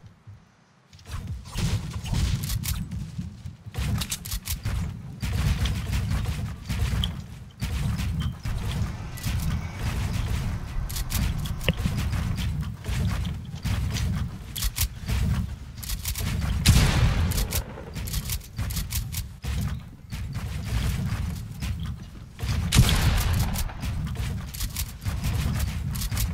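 Wooden building pieces clack and snap rapidly into place.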